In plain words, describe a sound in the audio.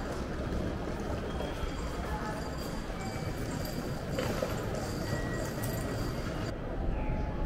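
Small wheels of a trolley roll along a hard floor.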